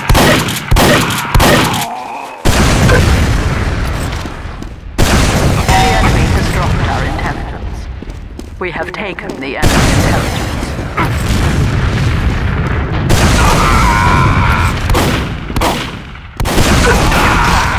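A shotgun fires sharp shots.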